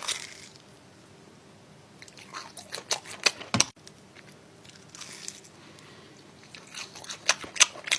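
A man chews and slurps food noisily close to the microphone.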